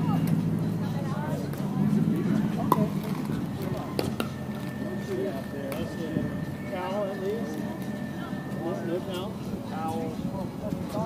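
Several men talk casually at a distance outdoors.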